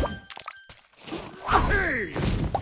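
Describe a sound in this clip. A cartoon creature cheers with a goofy voice.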